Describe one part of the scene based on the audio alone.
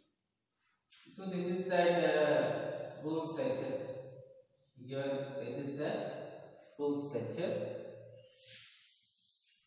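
A man speaks calmly and clearly, as if teaching.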